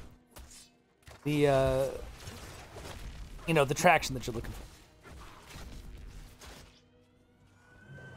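Spells and weapon strikes from a fight crackle and thud.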